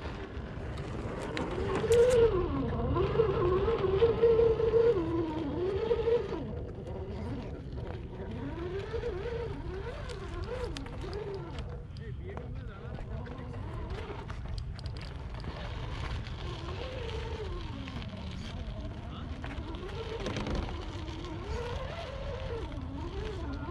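A small electric motor whines, rising and falling as a toy truck climbs.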